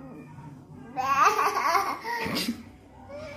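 A toddler laughs loudly and squeals.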